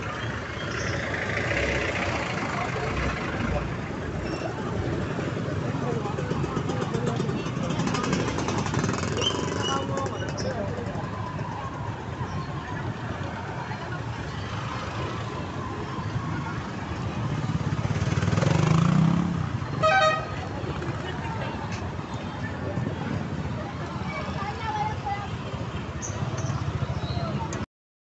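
A busy crowd chatters outdoors.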